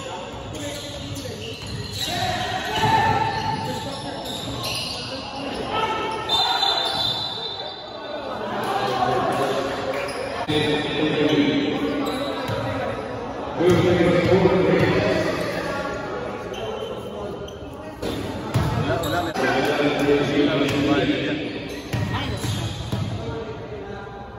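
A basketball bounces on a hardwood court in a large echoing gym.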